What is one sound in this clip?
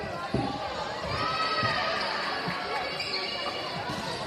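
A crowd of spectators cheers in a large echoing gym.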